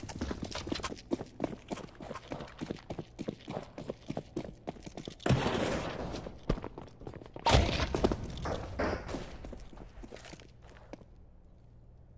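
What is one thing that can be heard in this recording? Quick footsteps run over hard ground.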